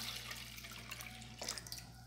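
Milk pours and splashes into a plastic jug.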